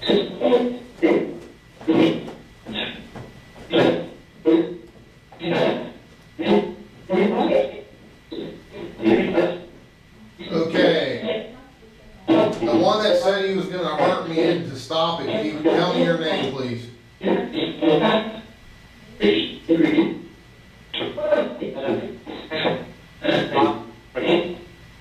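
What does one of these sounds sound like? A man speaks nearby in short, broken phrases.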